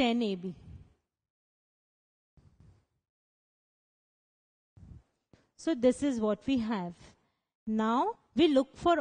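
A young woman speaks clearly and calmly, explaining.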